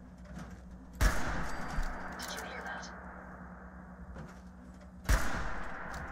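A rifle fires with sharp, loud cracks.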